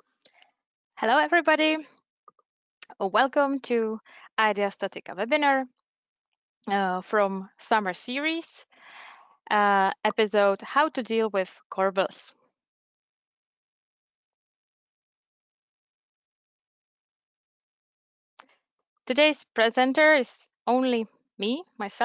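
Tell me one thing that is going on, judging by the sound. A young woman speaks calmly through an online call microphone.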